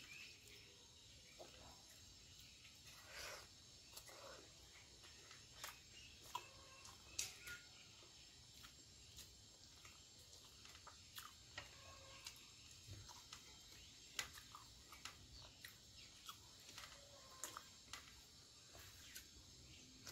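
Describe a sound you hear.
Fingers squish and mix rice and curry on a metal plate, close to the microphone.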